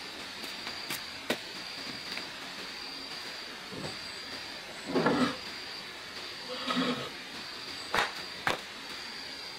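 Wood knocks and thuds against wood.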